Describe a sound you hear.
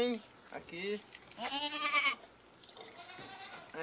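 A man talks calmly to children nearby.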